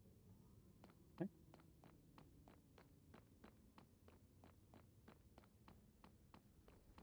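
Footsteps tap steadily on hard stone.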